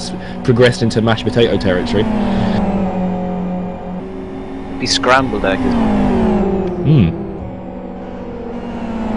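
Racing car engines roar steadily.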